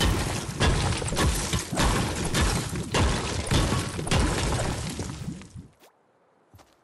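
A pickaxe strikes rock with rapid cracking blows.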